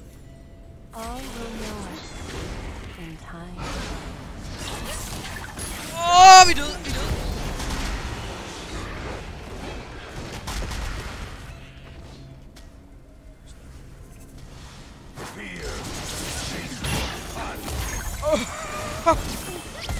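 Magic blasts and clashing combat effects crackle and whoosh during a fight.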